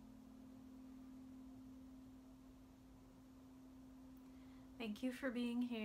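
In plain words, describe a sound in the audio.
A crystal singing bowl hums with a steady ringing tone.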